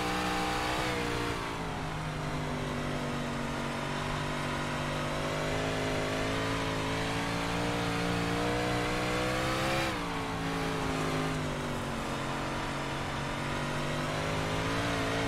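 A racing car engine roars steadily, rising and falling in pitch as it revs.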